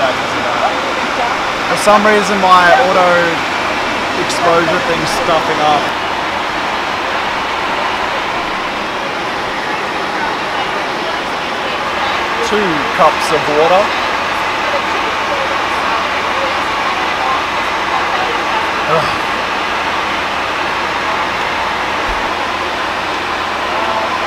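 An aircraft cabin hums with a steady low drone.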